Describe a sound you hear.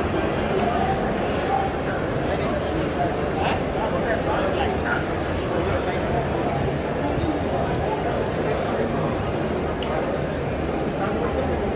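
A crowd of adults murmurs and chatters in a large echoing hall.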